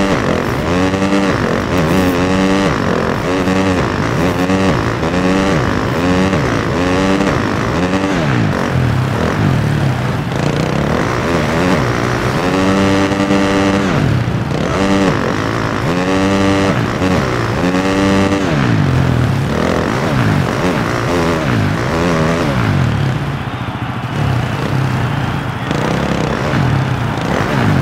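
Tyres churn through mud and dirt.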